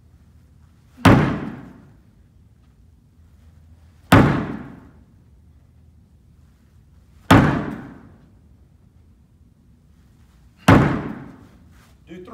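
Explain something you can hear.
A ball slams into a wooden wall with a loud bang that rings briefly.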